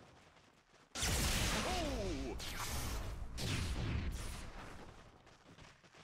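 Game spells blast and crackle loudly during a fight.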